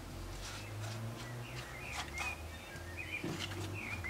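A brush scrapes and swishes through thick batter in a bowl.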